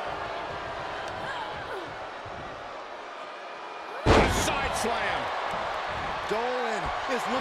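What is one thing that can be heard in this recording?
A crowd cheers loudly in a large arena.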